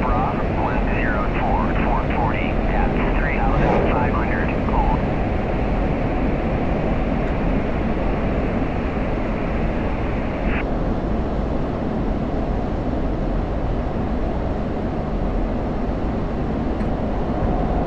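A jet engine roars steadily from inside a cockpit.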